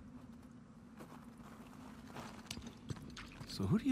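A man's footsteps crunch quickly over snow.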